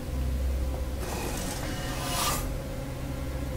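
A metal vent hatch slides open with a whoosh.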